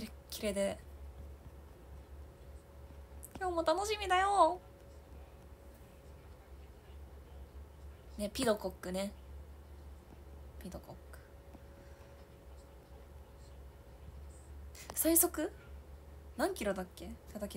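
A young woman speaks softly in short bursts, close to the microphone.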